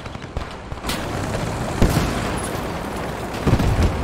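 A tank engine rumbles and roars.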